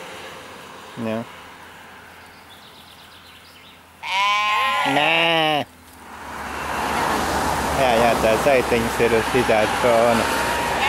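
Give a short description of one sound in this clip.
Sheep bleat.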